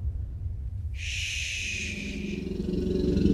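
A child makes a long, soft shushing sound.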